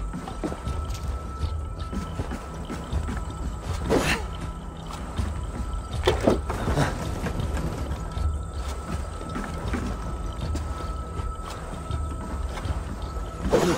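Footsteps thud slowly on wooden boards.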